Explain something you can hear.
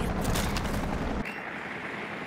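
Electronic static crackles and hisses from a handheld device.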